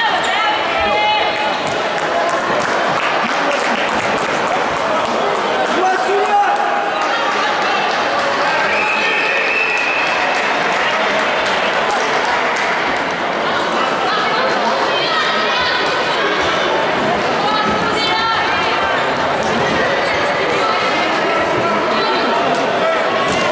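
Young women call out and shout to each other in a large echoing hall.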